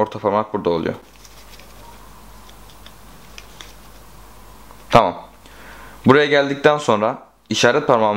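Playing cards rustle and tap softly in a hand.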